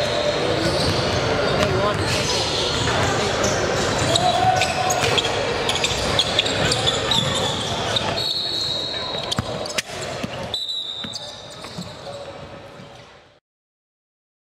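A basketball thuds as it bounces on a hardwood floor.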